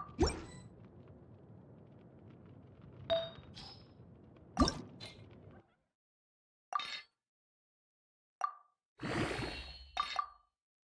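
Game menu chimes and clicks sound in short bursts.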